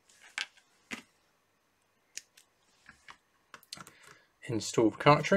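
Plastic parts click and knock as a small device is handled.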